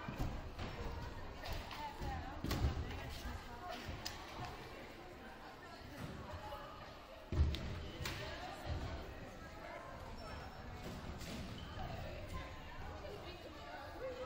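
A crowd of women and children chatter in a large echoing hall.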